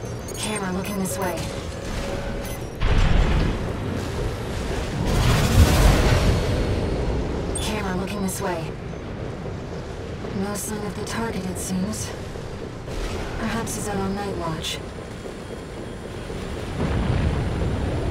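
Jet thrusters roar in loud bursts.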